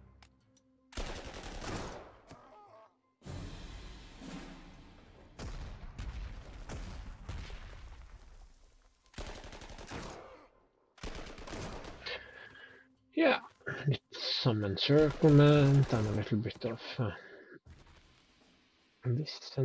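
Gunfire and explosions rumble in bursts from a battle.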